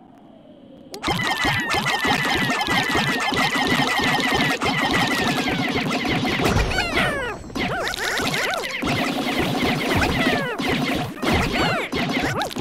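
Small thuds and pops sound as creatures strike a large mushroom.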